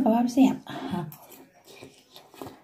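A woman slurps noodles noisily.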